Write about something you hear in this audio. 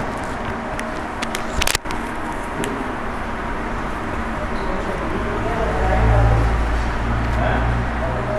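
Paper crinkles in a hand.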